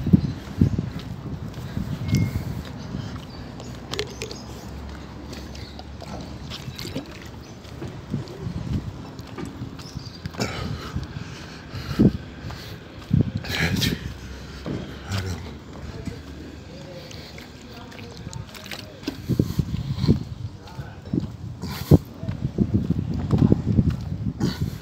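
Footsteps scuff on asphalt close by.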